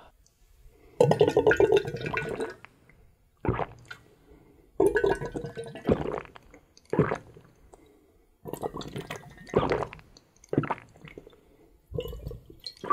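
A young man gulps and slurps a drink loudly.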